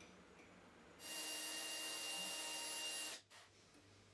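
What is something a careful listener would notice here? A lathe motor whirs steadily.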